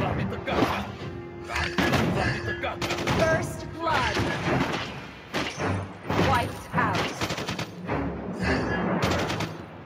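Video game fight sounds clash and burst in quick succession.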